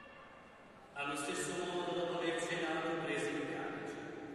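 A choir sings loudly, echoing in a large hall.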